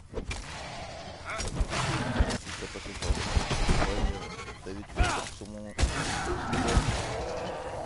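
A heavy blade strikes flesh with wet thuds.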